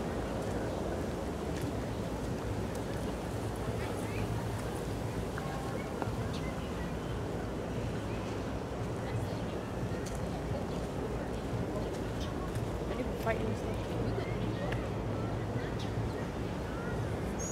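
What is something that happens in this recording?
Footsteps tap steadily on a paved path.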